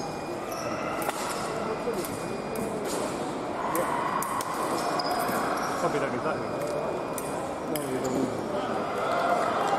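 Foil blades clash and click sharply in a large echoing hall.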